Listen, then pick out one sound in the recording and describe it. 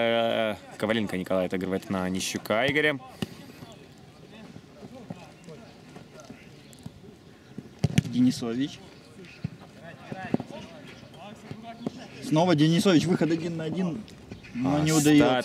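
A football thuds as players kick it outdoors.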